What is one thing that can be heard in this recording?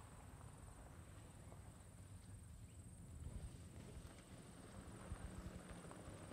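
A car engine hums as the car approaches slowly on a dirt track.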